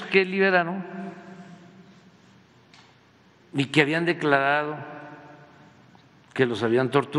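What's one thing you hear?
An elderly man speaks slowly and deliberately into a microphone, with pauses between phrases.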